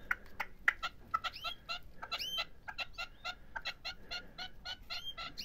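A small bird chirps rapidly and repeatedly close by.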